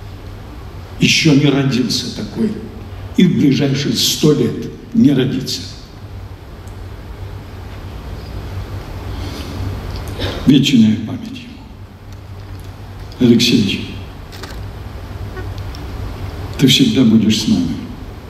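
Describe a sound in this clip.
A middle-aged man speaks slowly and solemnly into a microphone, heard through loudspeakers in a large echoing hall.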